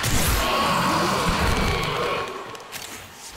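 A loud blast roars and rumbles, then fades.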